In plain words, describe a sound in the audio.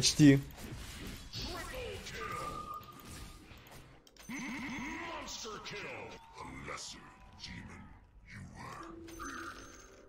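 Game fighting sound effects clash and crackle in quick bursts.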